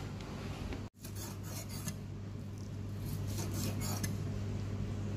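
A knife chops through meat on a wooden board with dull knocks.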